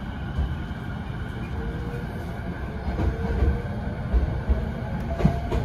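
A train hums and rumbles steadily.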